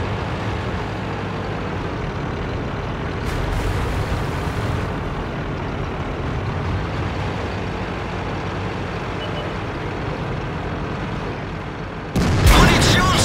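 A heavy tank engine rumbles low and steady.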